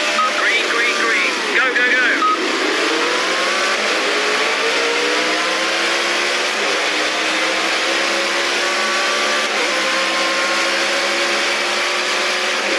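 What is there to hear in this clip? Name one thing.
A racing car engine roars and climbs steadily through the gears.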